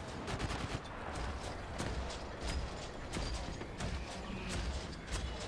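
Explosions rumble low and deep.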